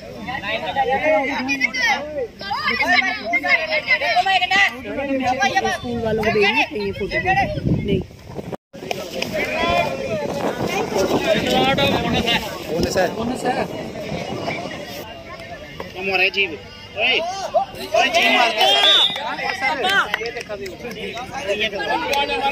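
A group of boys shout and call out nearby.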